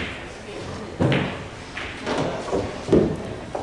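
Billiard balls clack together sharply.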